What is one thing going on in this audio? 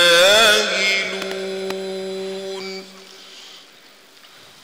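A man's chanting voice rings out with echo in a large hall.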